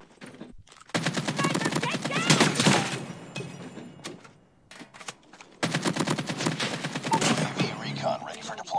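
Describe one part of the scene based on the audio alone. A rifle fires rapid automatic bursts.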